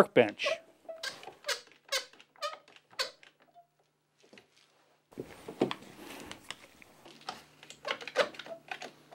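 Bar clamps click as they are squeezed tight.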